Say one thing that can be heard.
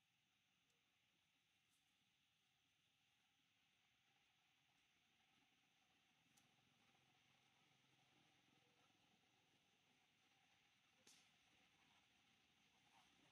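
A baby monkey suckles softly.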